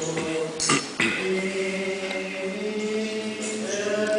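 A group of people sings together in a large echoing hall.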